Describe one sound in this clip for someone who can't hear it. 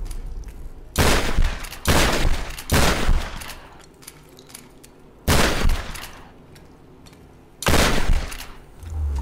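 Gunshots bang loudly several times.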